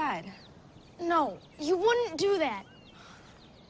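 A young boy speaks with animation.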